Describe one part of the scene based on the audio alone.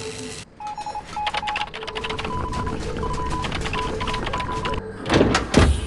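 A machine hums and beeps steadily while being worked.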